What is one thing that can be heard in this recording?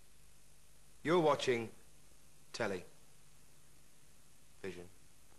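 A young man speaks calmly to the listener, close to a microphone.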